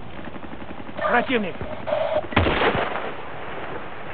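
A rifle fires with loud sharp cracks.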